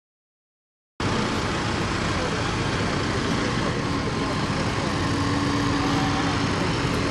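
Large tyres hum on the road.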